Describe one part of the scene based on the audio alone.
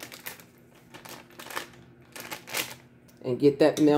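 Paper crinkles as butter is unwrapped.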